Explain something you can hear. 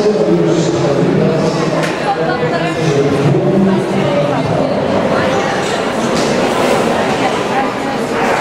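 A crowd chatters steadily in a large echoing hall.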